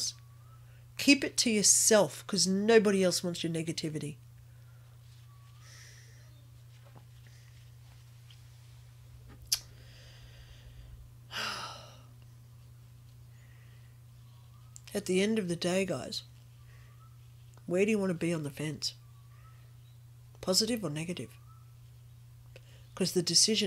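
A middle-aged woman speaks calmly into a nearby microphone, in short bursts with pauses.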